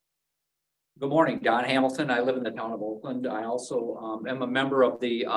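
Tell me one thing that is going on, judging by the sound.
A man speaks steadily and clearly into a microphone.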